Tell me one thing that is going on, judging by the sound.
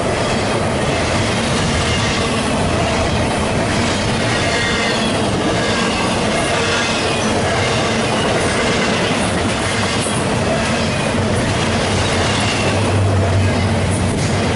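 Metal wheels squeal on the track.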